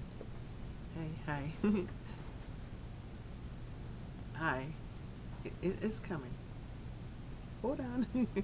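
A woman speaks with animation into a nearby microphone, in short bursts.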